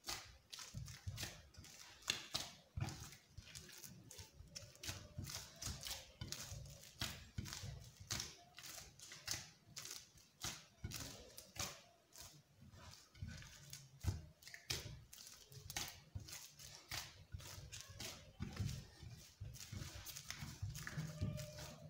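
Hands knead soft dough in a clay bowl with squishing, slapping sounds.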